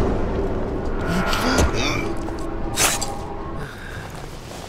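A man grunts in a short struggle.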